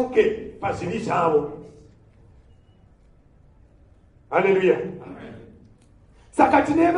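A man speaks loudly in short bursts with pauses.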